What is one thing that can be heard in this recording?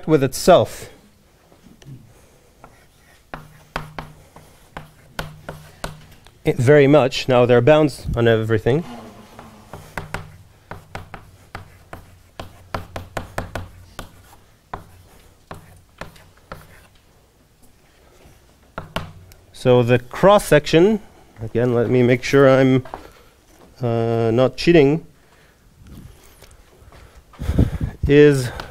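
A man speaks calmly in a room with a slight echo, pausing between phrases.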